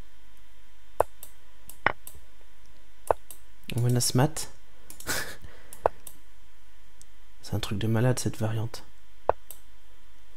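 Chess pieces click into place.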